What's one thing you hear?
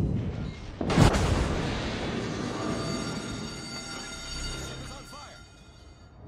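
Shells explode against a ship with sharp blasts.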